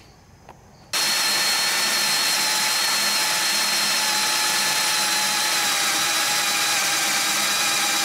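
An electric drill whirs steadily as it bores into metal.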